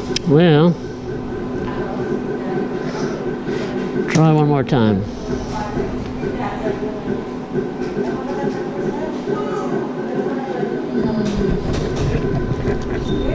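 A slot machine plays bright electronic jingles and chimes.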